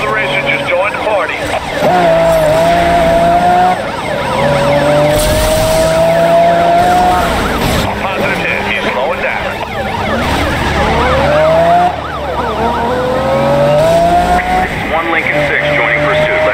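A sports car engine roars and revs as gears shift up.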